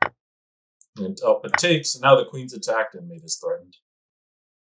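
A man speaks briefly with animation, close to a microphone.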